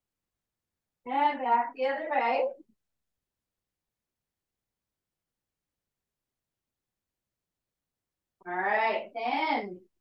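A young woman speaks calmly in short bursts.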